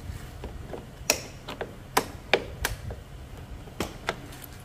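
A scooter seat latch clicks open.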